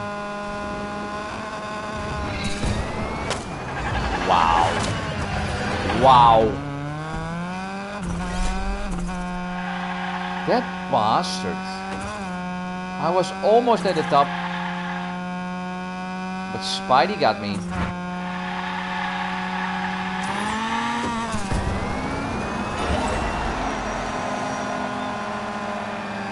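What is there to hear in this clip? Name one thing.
A racing car engine hums steadily and rises and falls in pitch.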